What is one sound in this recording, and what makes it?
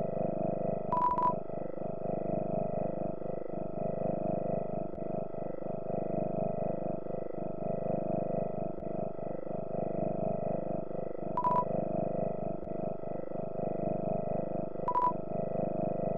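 Short electronic blips chirp in quick bursts.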